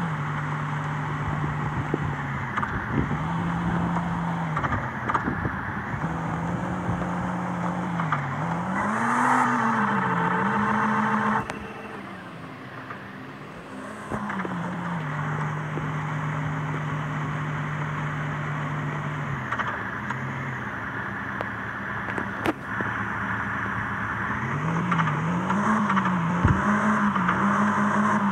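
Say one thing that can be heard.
A driving game's car engine drones, rising and falling in pitch.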